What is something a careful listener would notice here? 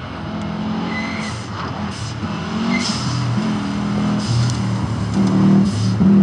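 A rally car's exhaust pops and crackles.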